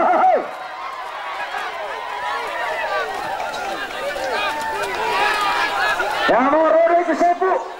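A crowd of men and women shouts and cheers outdoors.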